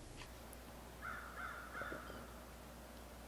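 A young man gulps a drink from a bottle.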